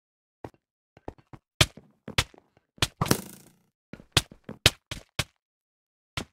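Sword blows land on a player in quick, sharp hits.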